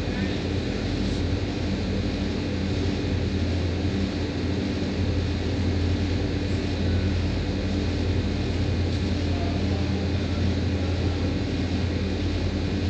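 Air conditioner units hum steadily.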